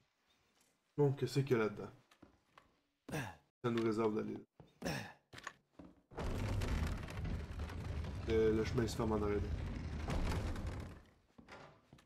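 Footsteps thud on creaking wooden stairs.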